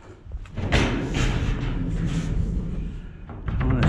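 A heavy metal lid creaks and scrapes as it is lifted open.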